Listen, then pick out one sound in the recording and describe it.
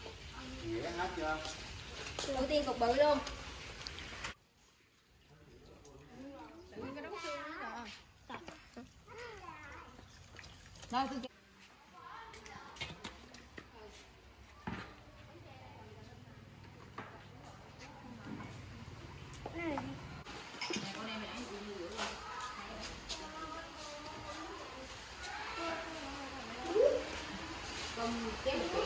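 Children talk and chatter nearby.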